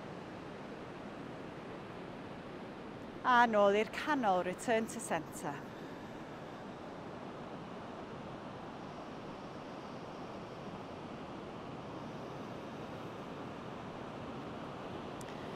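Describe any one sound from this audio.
Waves wash gently onto a beach, heard steadily outdoors.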